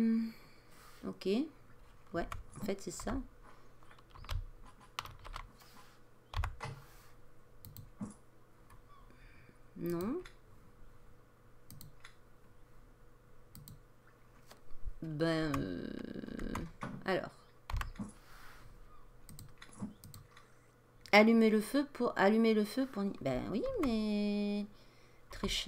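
Soft menu clicks sound now and then.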